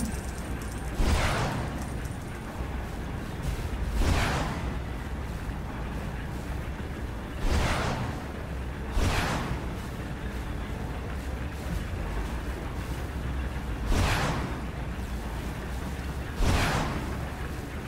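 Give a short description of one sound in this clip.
Flames whoosh in loud bursts again and again.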